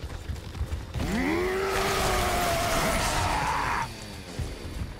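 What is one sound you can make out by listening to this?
A creature lets out a loud, rising screech.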